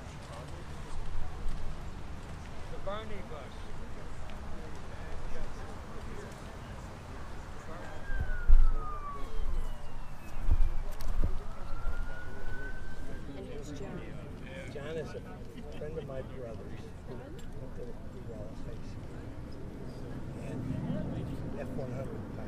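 Several people talk quietly outdoors.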